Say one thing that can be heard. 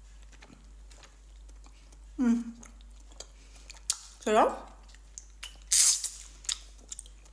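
A young woman blows air out through pursed lips.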